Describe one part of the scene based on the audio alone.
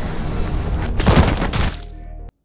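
A body lands with a heavy thud.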